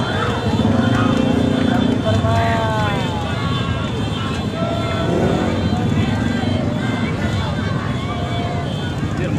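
Motorbike engines rumble and rev steadily.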